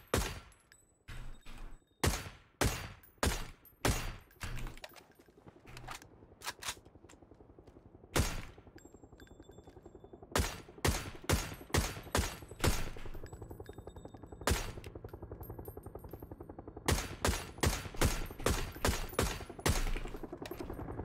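Sniper rifle shots crack in a video game.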